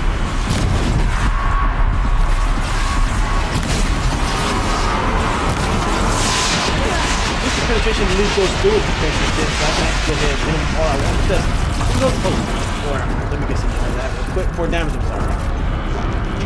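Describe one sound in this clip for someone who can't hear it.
Gunfire and explosions boom and crackle.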